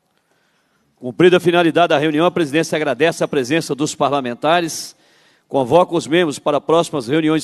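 A man speaks steadily through a microphone.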